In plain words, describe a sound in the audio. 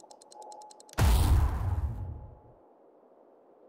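A game plays a loud whooshing burst as a skill is bought.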